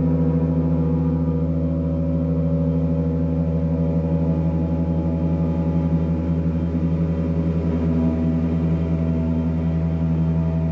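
A large gong hums and shimmers with a deep, steady, swelling drone.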